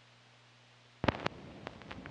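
A stylus drops onto a spinning record with a soft thump.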